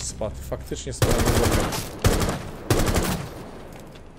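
Rapid gunfire bursts out in loud cracks.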